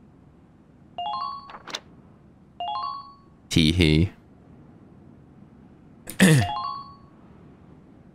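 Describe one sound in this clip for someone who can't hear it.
Short electronic menu chimes ring as a game cursor moves between options.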